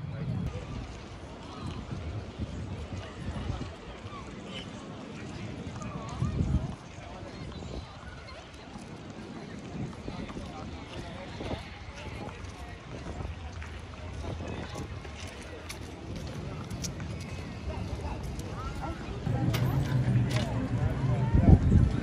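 People chatter and murmur outdoors nearby.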